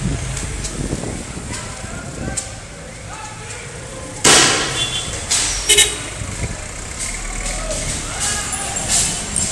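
A crowd of men shouts in the street outdoors.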